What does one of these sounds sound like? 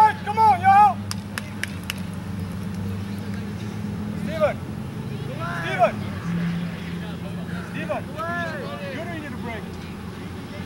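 Teenage boys shout to each other outdoors across an open field.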